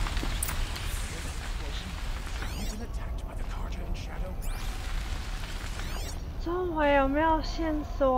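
Flames crackle and roar nearby.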